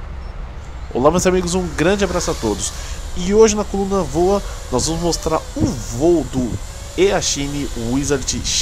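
A small drone's motors whine, rising and falling sharply in pitch.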